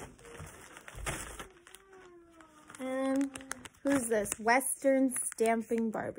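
A plastic wrapper crinkles in hands.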